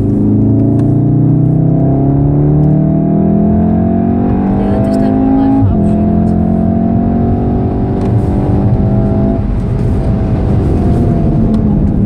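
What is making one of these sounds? Tyres roar on the road at speed.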